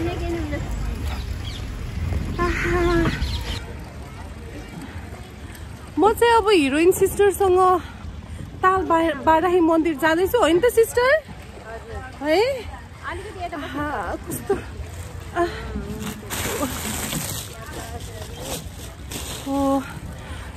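Water laps gently against a boat.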